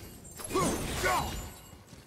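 A burst of flame whooshes.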